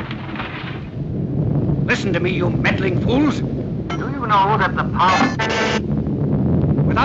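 An elderly man speaks sternly into a microphone.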